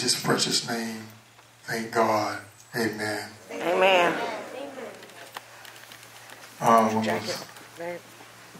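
A man speaks forcefully into a microphone, amplified through loudspeakers in an echoing room.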